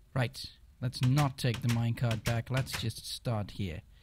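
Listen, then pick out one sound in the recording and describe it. A wooden door opens and shuts.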